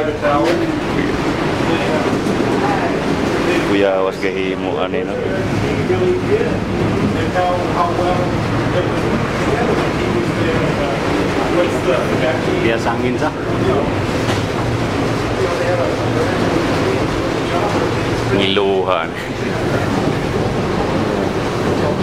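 Adult passengers talk nearby in an enclosed cabin.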